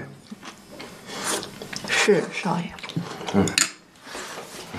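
A young woman speaks softly and calmly, close by.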